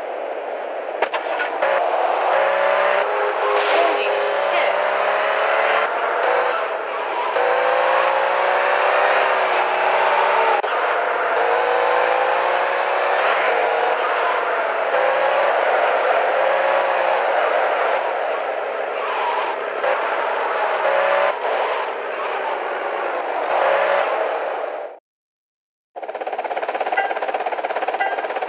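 A sports car engine revs and roars as the car speeds along.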